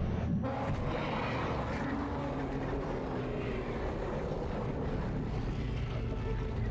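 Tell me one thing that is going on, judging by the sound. Eerie game music and rumbling drone play throughout.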